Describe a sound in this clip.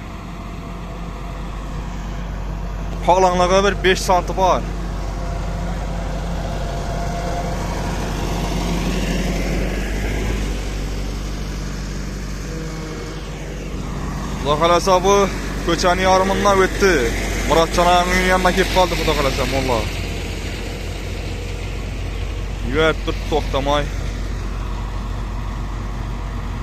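A heavy road machine's engine rumbles steadily nearby.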